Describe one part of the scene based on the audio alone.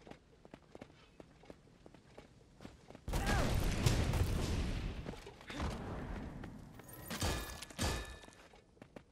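Weapons clash and strike in rapid hits.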